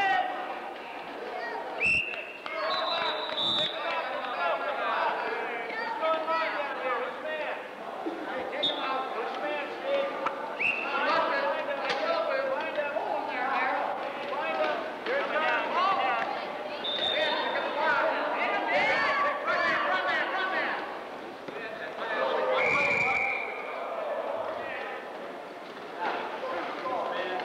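Wheelchair tyres squeak on a hard floor.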